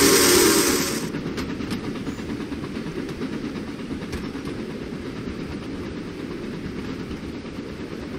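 Train carriages rumble and clatter along the rails.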